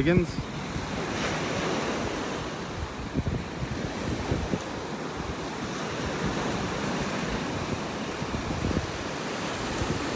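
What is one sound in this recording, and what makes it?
Small waves break and wash gently onto the shore.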